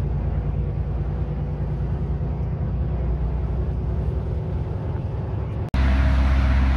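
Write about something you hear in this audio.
A vehicle drives along a highway with a steady engine and road rumble.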